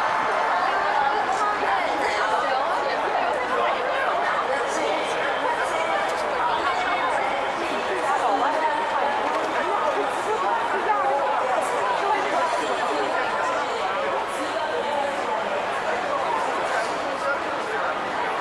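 A dense crowd of men and women chatters all around, close by.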